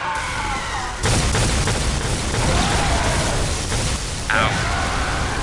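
Blows and impacts thud and clash.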